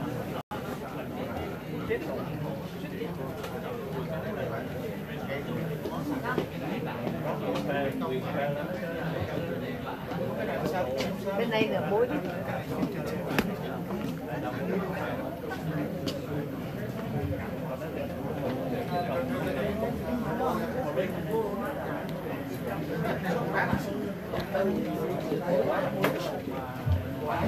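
Several men talk at once nearby.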